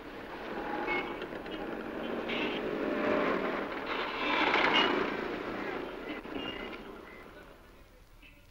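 City traffic roars steadily from a busy road.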